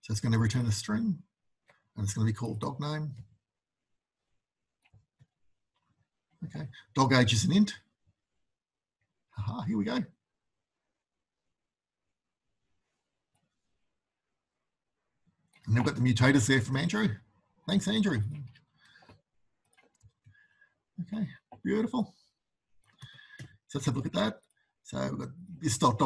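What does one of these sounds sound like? A man speaks calmly into a microphone over an online call, with pauses.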